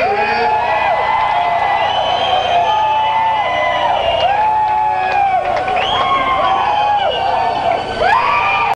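Loud live music plays through speakers in a large echoing hall.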